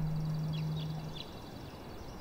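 A plucked zither string rings with a low, steady note.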